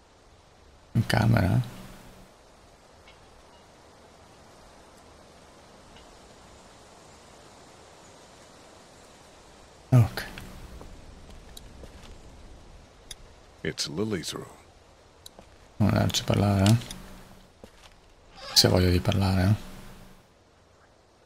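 A young man talks calmly into a close microphone in short bursts.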